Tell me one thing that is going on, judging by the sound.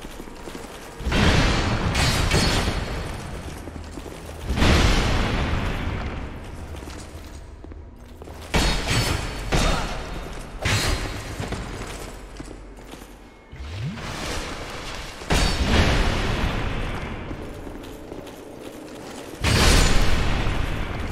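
A heavy magic club swings and crashes down with loud booming blasts.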